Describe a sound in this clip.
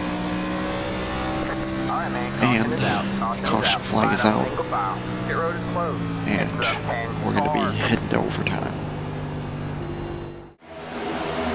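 A race car engine drones steadily from inside the car.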